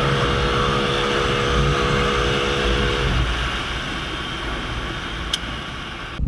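A second motorcycle engine runs close alongside.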